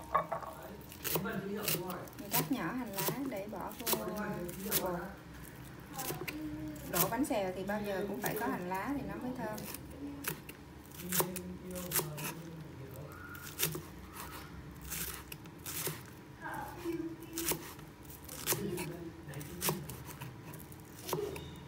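A knife chops rapidly on a wooden board.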